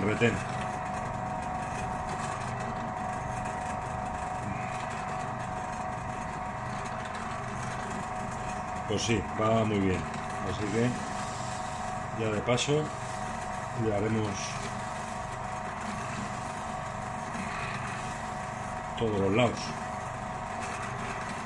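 A metal part rubs against a spinning polishing wheel.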